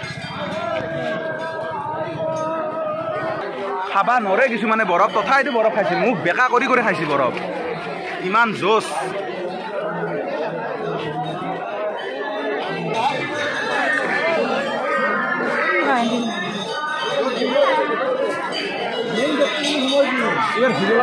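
A large crowd of men and women chatters outdoors, with many voices at once.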